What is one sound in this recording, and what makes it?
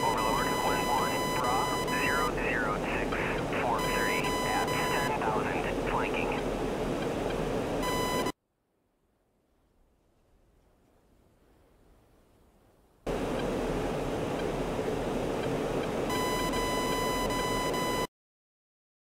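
A jet engine roars steadily from inside the cockpit.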